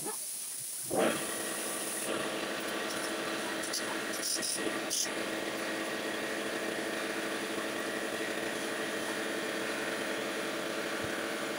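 Compressed air hisses loudly and steadily from an air gun.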